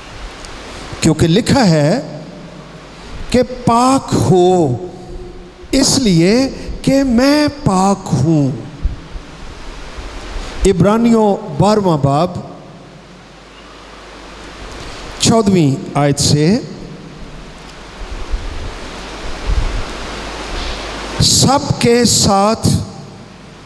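An elderly man speaks through a microphone over loudspeakers, in bursts with pauses, in a room with some echo.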